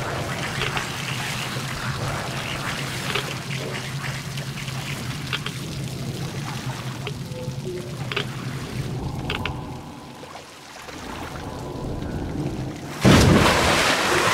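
Water laps softly against a small wooden boat as it glides along.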